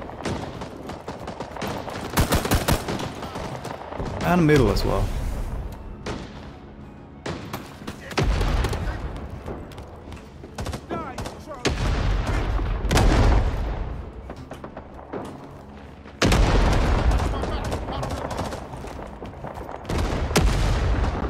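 Gunfire cracks and booms repeatedly, echoing around.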